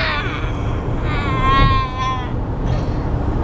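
A young girl laughs and squeals.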